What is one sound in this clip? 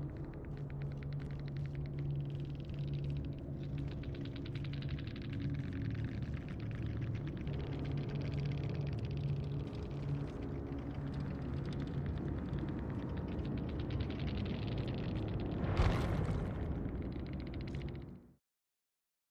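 Low, eerie music drones steadily and then cuts off.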